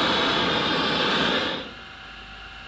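A gas torch roars loudly.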